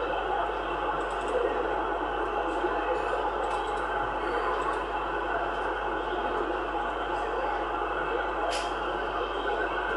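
Static hisses steadily from a radio receiver's loudspeaker.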